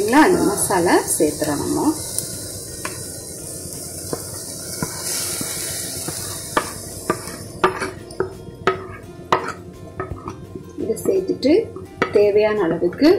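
A wooden spoon scrapes and taps against a plastic plate.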